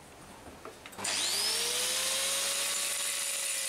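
An electric grinder whirs steadily at high speed.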